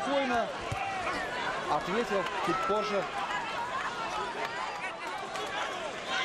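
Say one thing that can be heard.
A large crowd in an arena cheers and shouts throughout.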